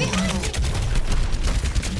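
A game explosion bursts loudly.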